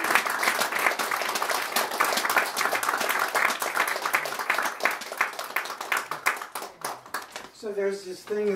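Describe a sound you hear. Accordion buttons clatter rapidly.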